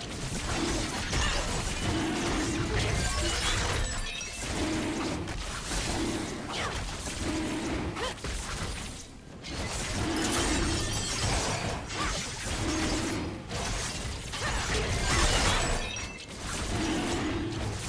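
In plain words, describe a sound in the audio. Sharp magical strikes and slashes hit a creature again and again in quick bursts.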